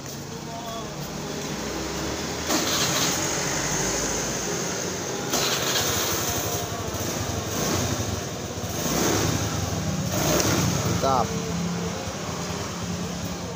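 Keys jingle as a key turns in a scooter's ignition.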